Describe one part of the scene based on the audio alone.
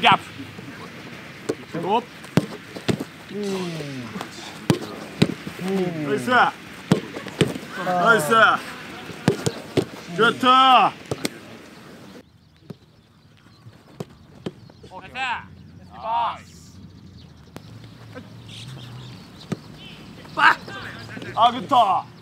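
Footballs are kicked with sharp thuds.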